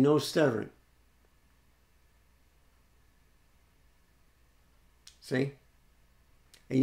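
An older man speaks calmly and close up, in short bursts.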